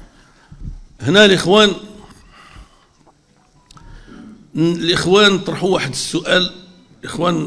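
An elderly man speaks forcefully into a microphone, his voice carrying through a loudspeaker.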